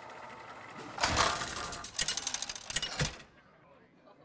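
A spinning reel clatters quickly and stops with a clunk.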